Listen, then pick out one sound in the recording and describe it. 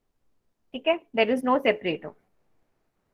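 A young woman speaks briefly and calmly through a computer microphone.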